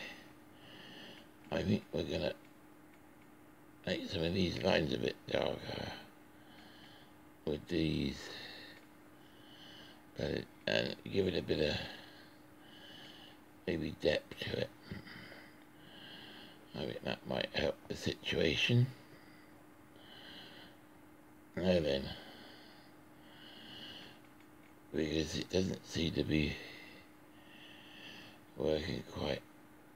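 A coloured pencil scratches softly across paper.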